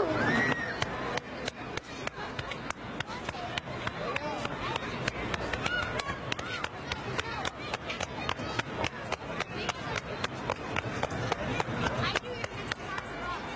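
Hands rapidly pat and chop on a person's back.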